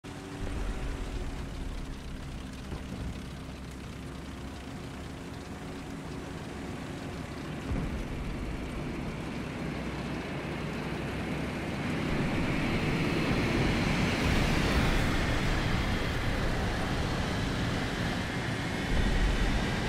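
A tank engine rumbles steadily and grows louder.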